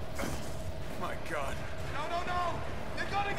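A man speaks in alarm, pleading.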